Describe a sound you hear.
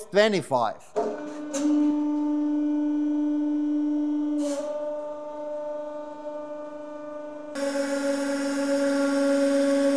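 A hydraulic press hums loudly and steadily.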